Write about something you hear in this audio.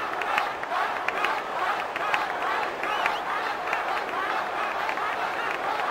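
Many hands clap.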